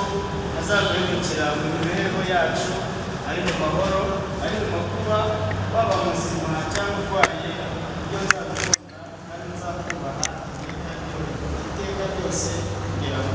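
A man speaks calmly nearby in an echoing room.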